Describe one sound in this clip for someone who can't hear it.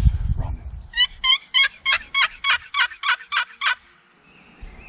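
A wooden box call yelps in a quick, even series of sharp, raspy notes.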